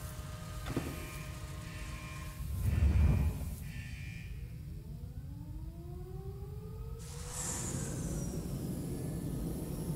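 A spaceship's engine hums and roars as it powers up.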